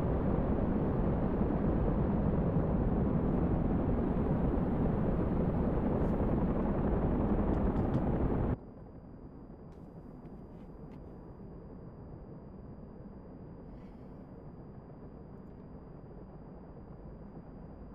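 A jet engine roars steadily close by, then suddenly drops to a quieter, muffled hum.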